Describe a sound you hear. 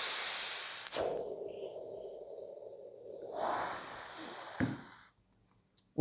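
A man exhales a long, breathy puff.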